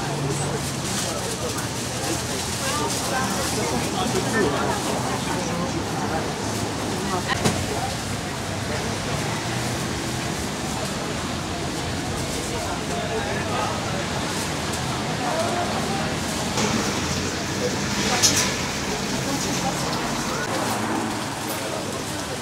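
A crowd of shoppers chatters all around, outdoors.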